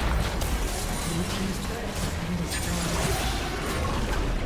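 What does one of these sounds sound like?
Magic spells whoosh and crackle in a fast video game battle.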